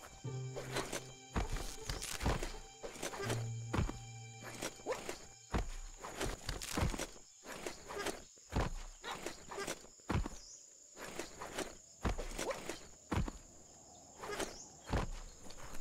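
A game character swings through the air on a rope with whooshing sounds.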